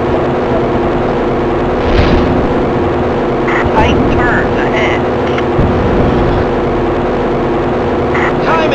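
A video game powerboat engine drones at full throttle.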